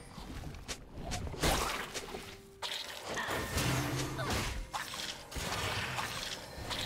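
Magic spells whoosh and burst in quick succession.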